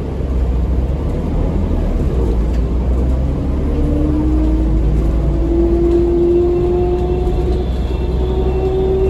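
A bus engine rumbles low and steady inside the cabin.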